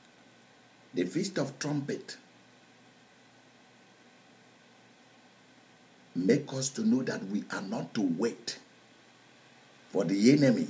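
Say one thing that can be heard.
A middle-aged man speaks earnestly and close up, in short bursts with pauses.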